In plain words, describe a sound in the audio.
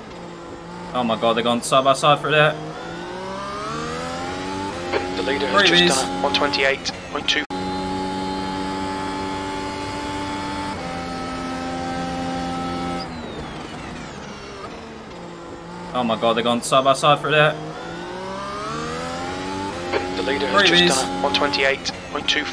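A racing car engine pops and crackles sharply while slowing.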